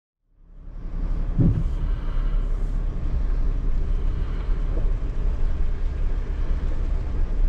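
Tyres crunch slowly over gravel outdoors, with a low steady rumble.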